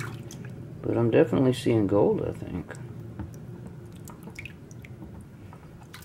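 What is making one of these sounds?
Water sloshes as a plastic pan is swirled in a tub.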